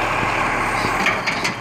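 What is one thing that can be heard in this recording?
A bin clatters as it is tipped.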